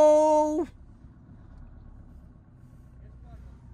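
Footsteps scuff softly on a sandy path.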